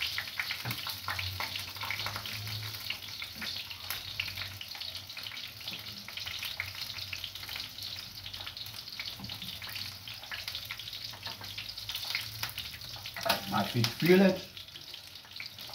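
Metal tongs click and scrape against a pan.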